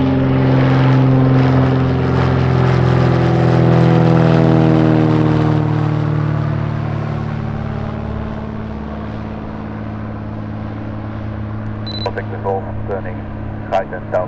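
A small propeller plane drones overhead, its engine pitch dropping as it passes and fades into the distance.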